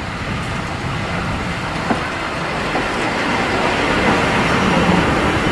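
A steam locomotive rumbles and hisses nearby.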